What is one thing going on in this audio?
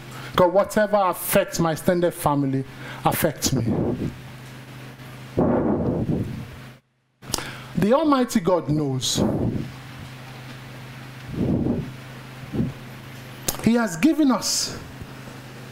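A man preaches with animation through a microphone, in a large echoing room.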